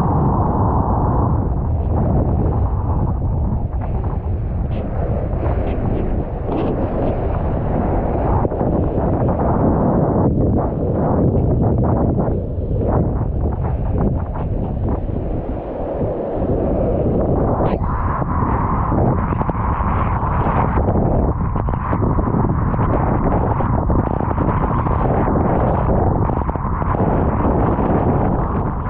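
Water splashes and rushes under a board skimming across the sea.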